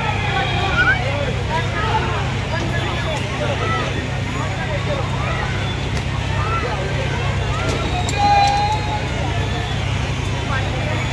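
Many children chatter and call out nearby.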